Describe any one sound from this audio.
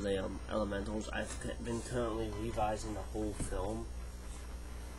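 A young man talks with animation close to a webcam microphone.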